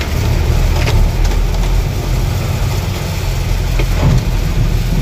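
A vehicle engine rumbles steadily as it rolls slowly forward.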